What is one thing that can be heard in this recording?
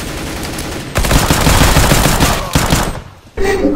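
A gun fires loudly in a short burst.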